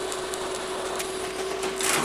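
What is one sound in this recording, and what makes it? An arc welder crackles and sizzles.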